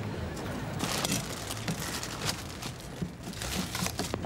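Powder shakes out of a plastic tub onto a car's windscreen.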